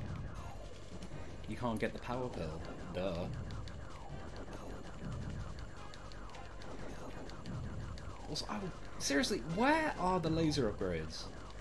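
A spaceship engine hums steadily.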